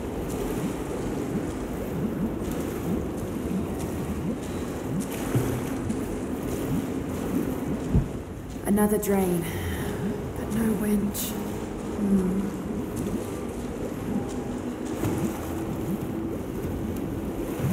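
Water sloshes as someone wades through it.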